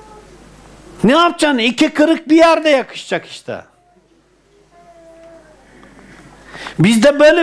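An elderly man speaks with animation into a clip-on microphone.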